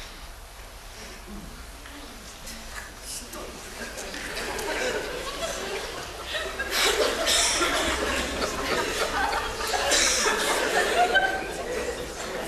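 A man speaks loudly and with animation on a stage, heard in a large hall.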